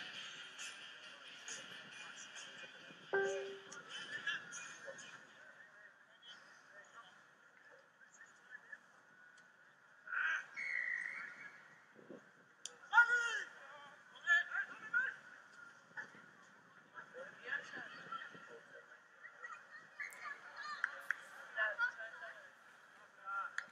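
Male rugby players shout to each other outdoors on an open field.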